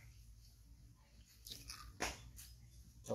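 A baby monkey sucks noisily on a milk bottle.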